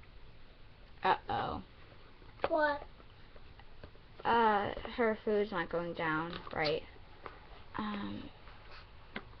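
A girl speaks animatedly close by.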